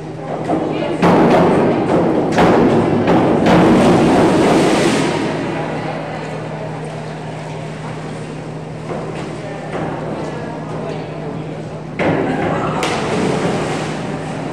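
A crowd cheers and claps in a large echoing hall.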